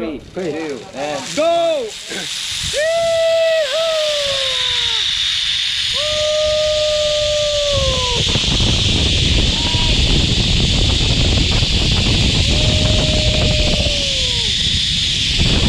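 A young man whoops and yells with excitement up close.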